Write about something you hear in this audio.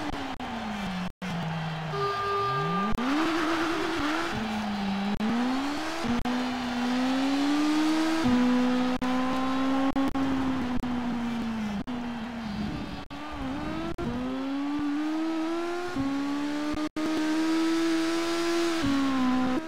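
A race car engine revs hard, its pitch climbing and dropping sharply with each gear change.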